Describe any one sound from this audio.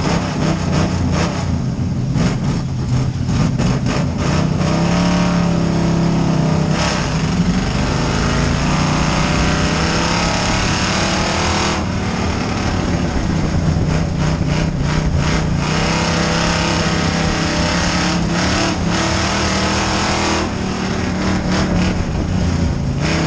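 A race car engine roars loudly close by, revving up and down.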